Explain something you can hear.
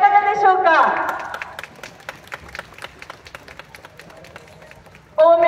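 Hands clap sharply several times.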